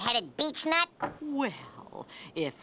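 A cartoon man speaks in a grumpy voice.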